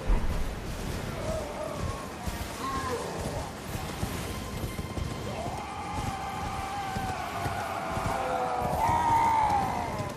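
A horse gallops, its hooves thudding on the ground.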